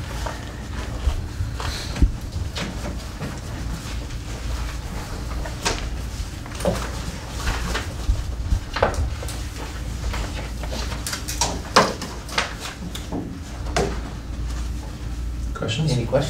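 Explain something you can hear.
Paper rustles and shuffles close by.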